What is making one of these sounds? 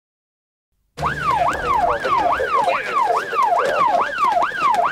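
A siren wails quickly up and down, close by.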